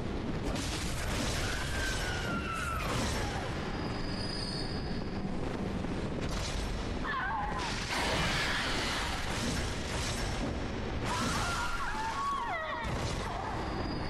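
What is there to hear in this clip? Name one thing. A blade slashes and strikes in a fight.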